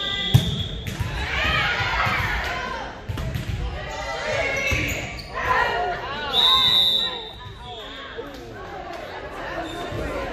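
Young women on a team shout and cheer with excitement in a large echoing hall.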